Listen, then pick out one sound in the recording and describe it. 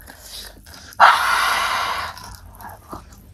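A young woman breathes out hard through an open mouth.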